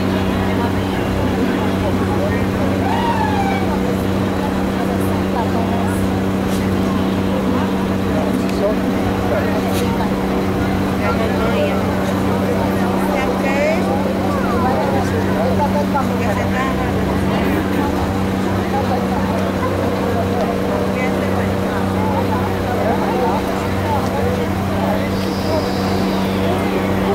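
A crowd of people talk and call out nearby.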